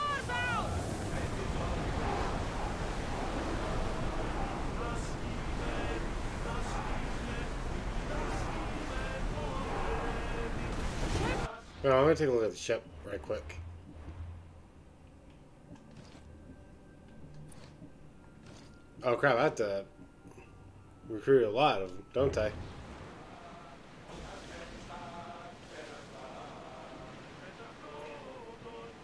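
Waves rush and splash against a sailing ship's hull.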